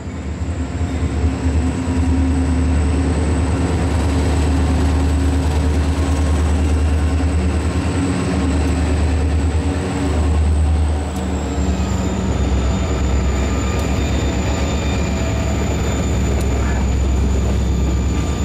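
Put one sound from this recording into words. Freight train wheels clatter and squeal over the rails.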